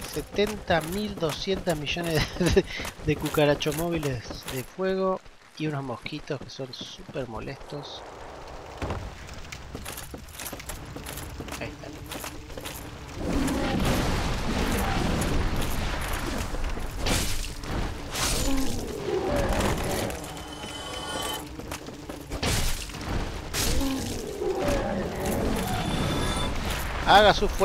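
Armoured footsteps clatter on wooden planks.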